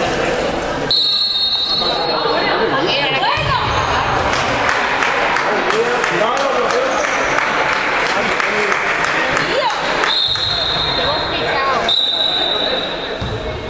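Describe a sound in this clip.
A referee blows a sharp whistle.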